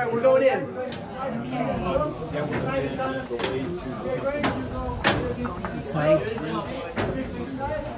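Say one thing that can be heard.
A metal turnstile clanks and rattles as it turns.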